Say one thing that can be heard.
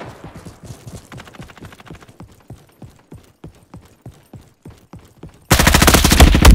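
Footsteps patter at a running pace.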